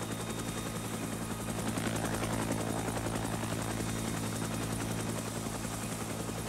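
Helicopter rotor blades thump steadily as a helicopter flies low overhead.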